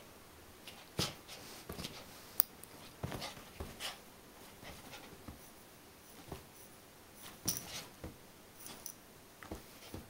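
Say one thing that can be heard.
A small puppy yips.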